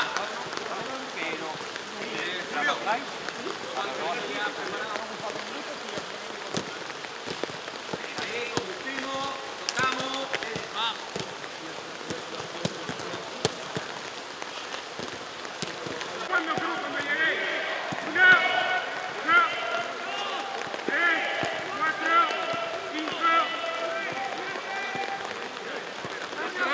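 Young men call out to each other across a large open stadium.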